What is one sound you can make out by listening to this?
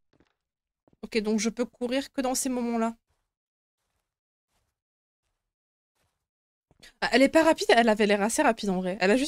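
A young woman speaks into a close microphone.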